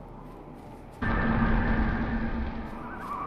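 A soft rumbling tone swells up and fades.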